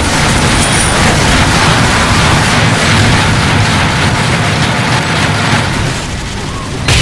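Explosions boom and fire roars in a loud battle.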